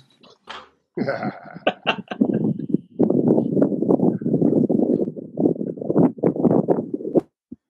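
Several men laugh over an online call.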